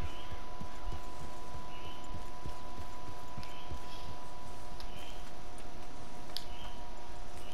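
Hooves thud on soft ground as a horse walks.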